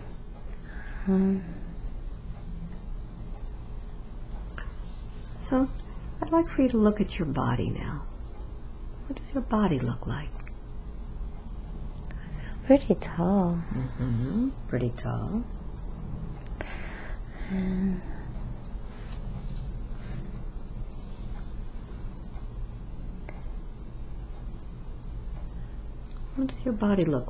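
A middle-aged woman moans and sighs softly, close to a microphone.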